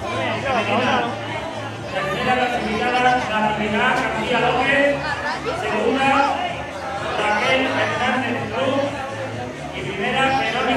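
A middle-aged man reads out a text through a microphone and loudspeakers outdoors.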